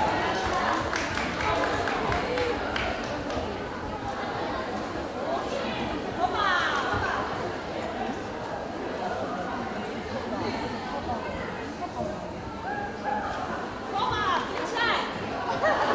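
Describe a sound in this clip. Dancers' feet shuffle softly on a wooden floor.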